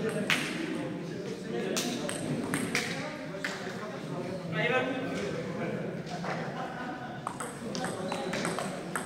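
A ping-pong ball clicks back and forth on paddles and a table in a large echoing hall.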